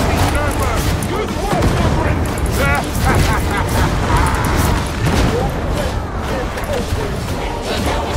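A heavy weapon strikes with crunching blows.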